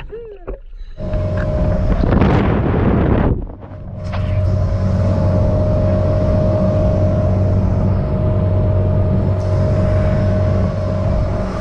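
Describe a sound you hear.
Water rushes and splashes against a boat's hull.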